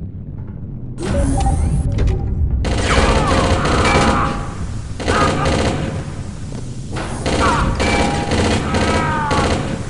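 A rifle fires loudly in bursts.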